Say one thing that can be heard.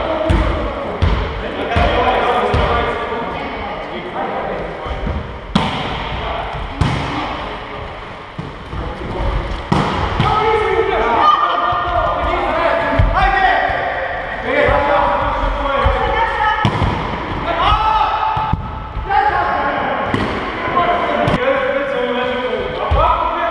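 Men call out and shout to each other during play.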